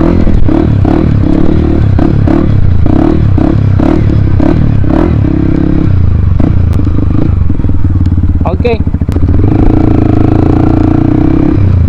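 A dirt bike engine revs and sputters close by.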